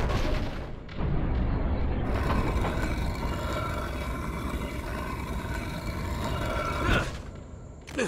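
Heavy stone rumbles and crashes down.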